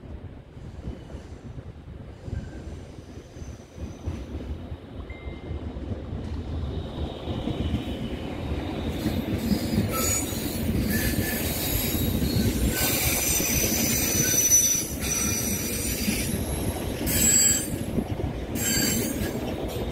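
A passenger train approaches and rolls past with a rising rumble.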